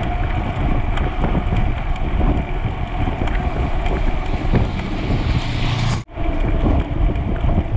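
Bicycle tyres hum on smooth asphalt.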